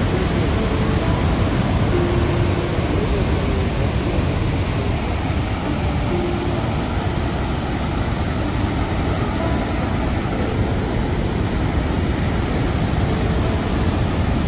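A huge waterfall roars steadily nearby.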